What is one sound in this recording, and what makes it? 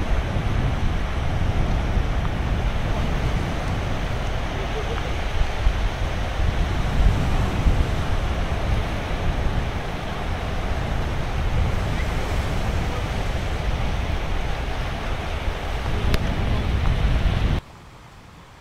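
Waves wash onto the shore with a steady rushing.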